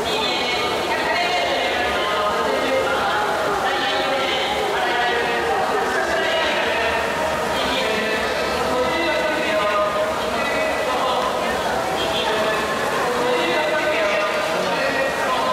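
Swimmers splash through the water in an echoing indoor pool.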